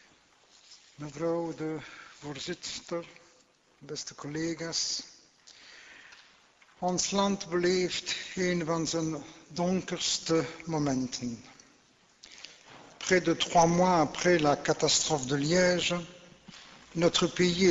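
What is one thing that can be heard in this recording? A man speaks steadily into a microphone, reading out in a formal tone.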